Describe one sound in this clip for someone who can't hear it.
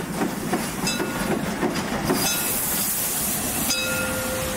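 A steam locomotive chuffs heavily as it rolls past.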